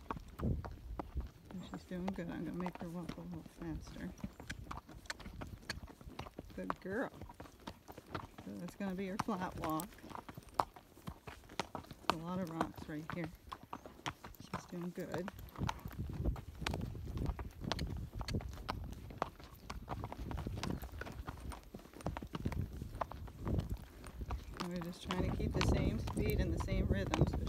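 A horse's hooves thud and crunch steadily on a dry dirt trail.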